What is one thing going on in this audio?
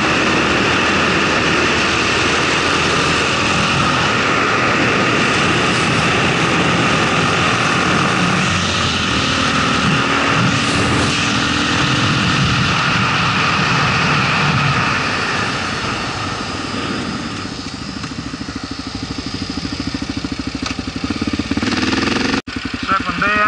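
A single-cylinder dual-sport motorcycle rides fast along an open road.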